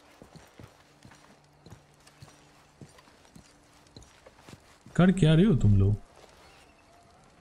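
Footsteps crunch softly on dirt.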